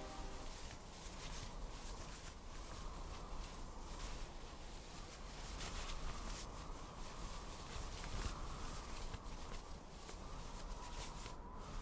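A large flag flaps and ripples in strong wind.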